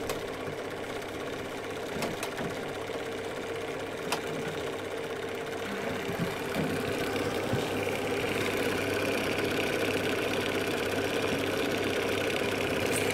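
A film projector whirs and clatters steadily.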